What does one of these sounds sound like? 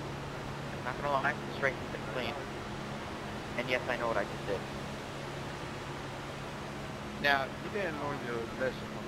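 A young man speaks in short bursts through a headset microphone.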